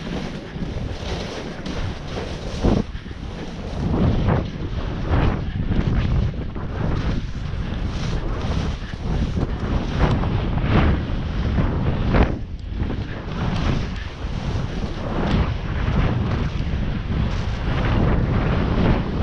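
Wind rumbles against a helmet microphone.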